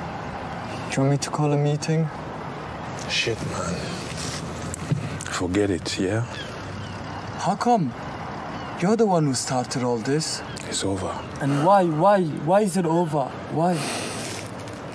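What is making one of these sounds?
A young man speaks quietly and tensely nearby.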